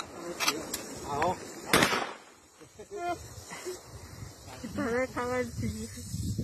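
Young men talk calmly nearby.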